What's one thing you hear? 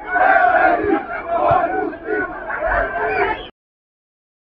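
A crowd of fans chants loudly in an open stadium.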